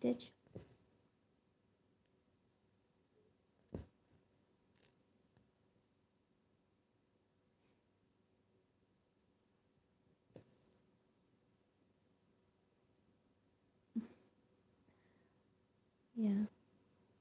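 A needle and thread pull through stiff fabric with soft, brief rasps.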